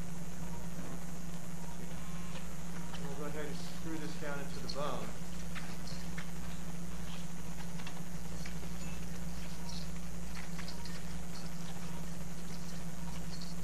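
A motorized surgical shaver whirs steadily.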